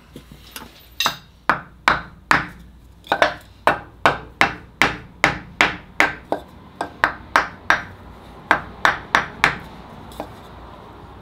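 A hammer taps rapidly on a wooden block.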